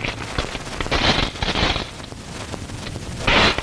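Coins clink against a metal plate.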